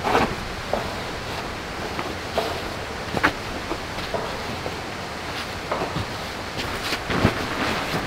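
A thick blanket rustles and flaps as it is spread out.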